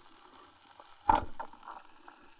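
A speargun fires underwater with a sharp thud.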